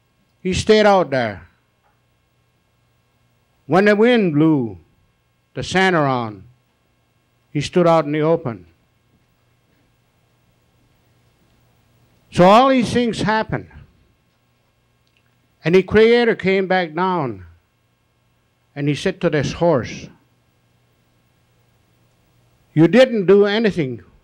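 A man sings short phrases loudly through a microphone, with silent pauses between them.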